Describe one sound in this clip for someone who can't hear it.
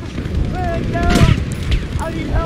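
Explosions boom heavily nearby.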